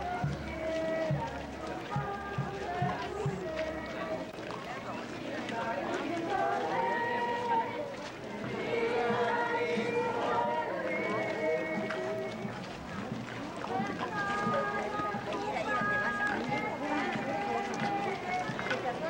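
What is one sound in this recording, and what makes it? A crowd of men and women sings together slowly outdoors.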